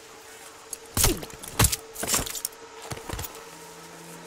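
Sharp blows thud in a brief scuffle.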